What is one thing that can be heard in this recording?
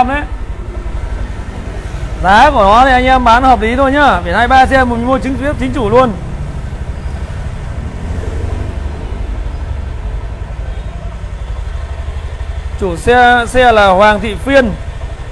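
A scooter engine idles with a steady low rumble.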